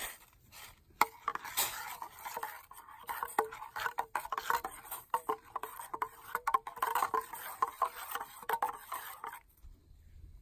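A spoon scrapes and clinks against a metal pot while stirring a thick liquid.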